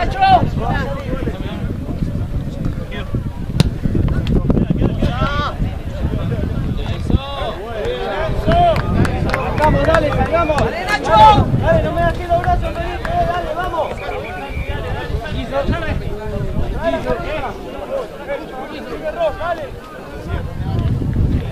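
A small crowd of spectators shouts and cheers close by, outdoors.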